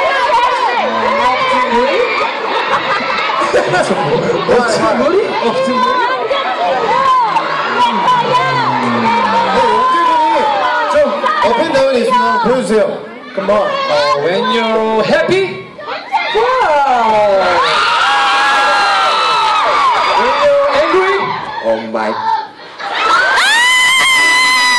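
A crowd screams and cheers loudly.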